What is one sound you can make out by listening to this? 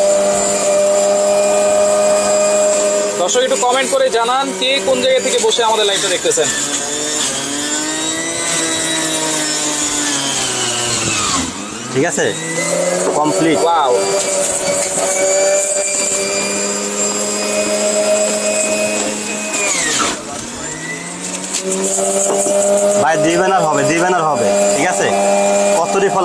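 An electric juicer motor whirs steadily, its pitch sagging as fruit is pushed in.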